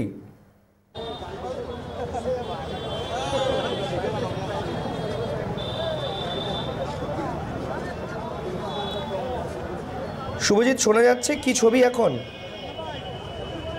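A crowd of men shouts and murmurs outdoors.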